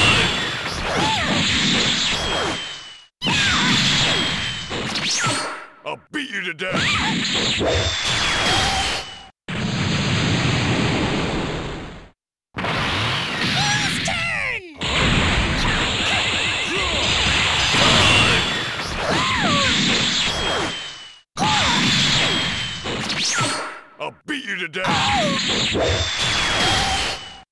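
Energy blasts whoosh and explode in a video game fight.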